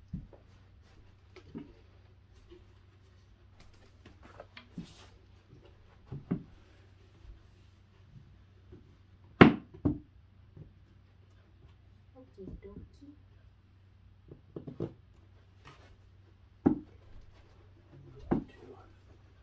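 Wooden panels knock and thump against each other.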